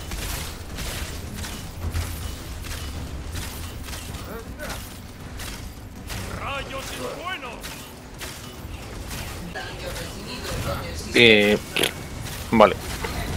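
Energy blasts and impacts crackle and burst in rapid succession.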